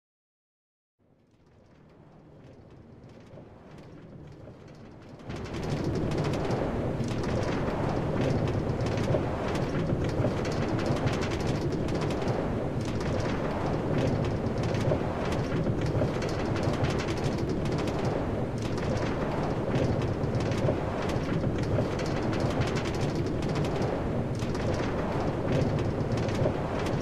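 A cart rumbles and rattles along rails, growing louder as it picks up speed.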